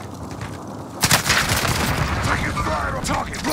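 A rifle fires sharp gunshots.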